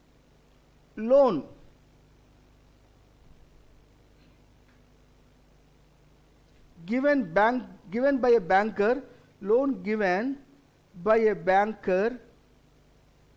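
A middle-aged man speaks calmly into a microphone, explaining.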